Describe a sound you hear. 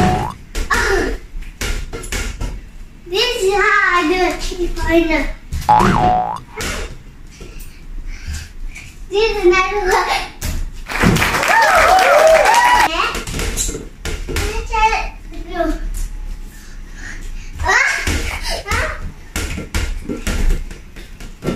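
A basketball bounces on a hard floor indoors.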